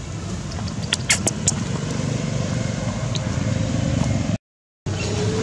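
Dry leaves rustle and crunch as a monkey walks over them.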